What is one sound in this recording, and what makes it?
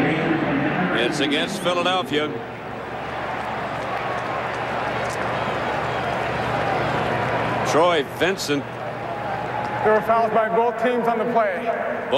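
A man announces through a stadium loudspeaker, echoing.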